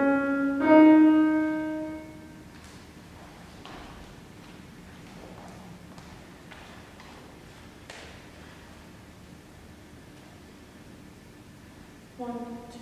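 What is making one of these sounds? A piano plays notes that ring out in an echoing hall.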